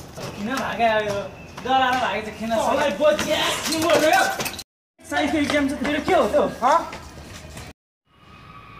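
A young man shouts angrily close by.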